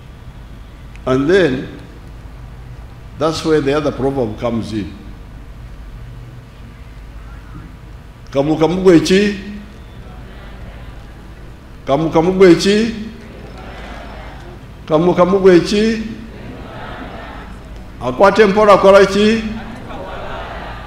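An elderly man speaks slowly through a microphone and loudspeakers, in short bursts with pauses.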